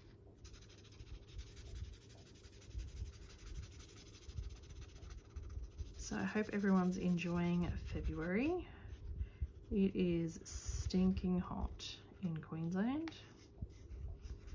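A felt-tip marker squeaks and scratches softly on paper.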